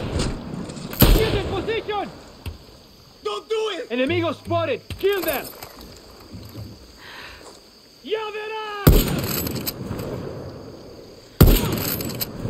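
A gun fires loud single shots that ring out and echo.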